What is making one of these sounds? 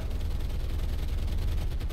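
Water splashes up beside a ship.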